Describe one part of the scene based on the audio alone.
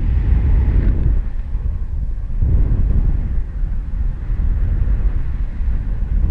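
Wind rushes and buffets loudly against a microphone high in the open air.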